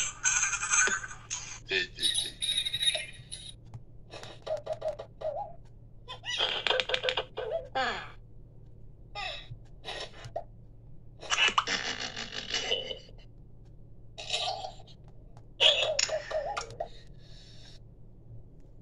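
A cartoon character's high, squeaky voice chatters in bursts from a small device speaker.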